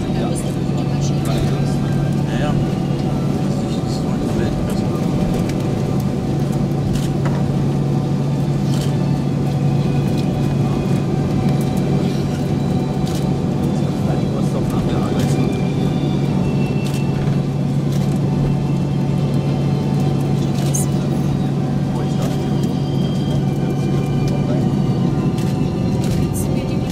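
A jet engine hums steadily inside an airliner cabin as it taxis.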